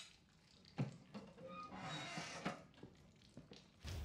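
A small cabinet door creaks open.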